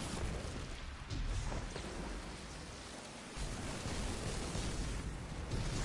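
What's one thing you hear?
A sword slashes with a sharp whoosh.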